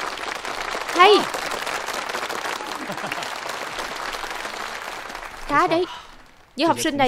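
A crowd claps and applauds steadily outdoors.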